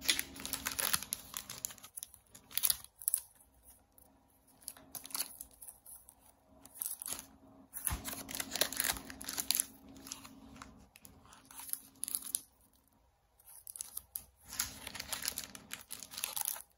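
Plastic wrapping crinkles and rustles as bundles of banknotes are handled.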